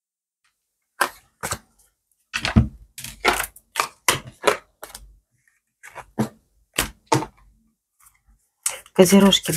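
Cards slide and tap on a table.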